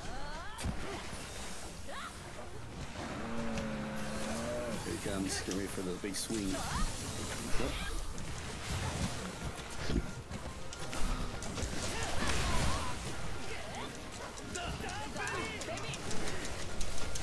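Water splashes as hunters fight through shallow water.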